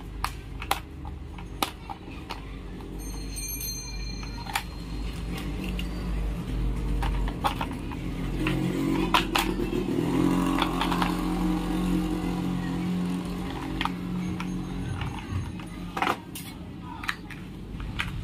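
Hard plastic parts click and clatter as they are handled.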